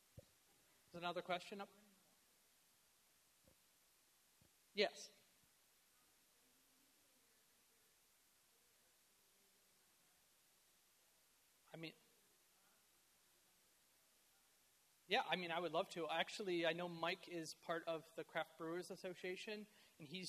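A man speaks through a microphone in a large room, with long pauses.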